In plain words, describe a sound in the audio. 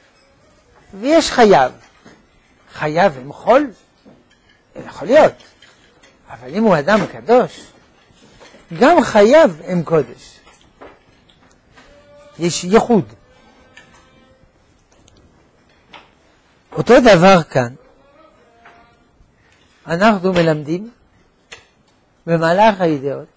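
An elderly man speaks with animation through a microphone, in short bursts with pauses.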